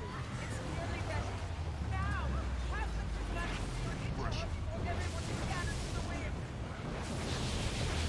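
Magic spells whoosh and crackle in a busy fantasy battle.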